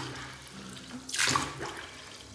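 Water splashes briefly as a hand dips into a bucket.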